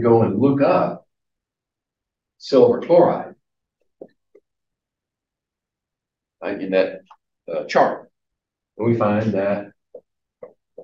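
An older man lectures in short, spaced phrases.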